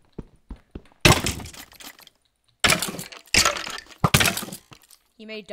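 Sword blows thud in quick succession.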